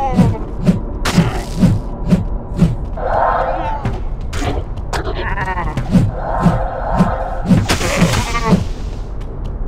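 Heavy footsteps thud steadily on stone.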